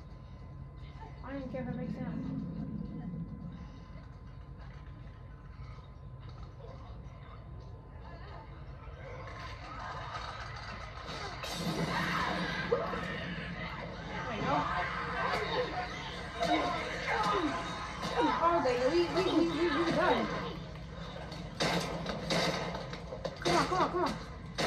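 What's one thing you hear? Loud video game fighting sounds play from a television.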